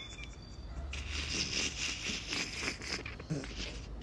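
A man laughs breathily close to the microphone.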